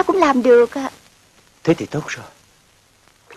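A young woman speaks warmly, close by.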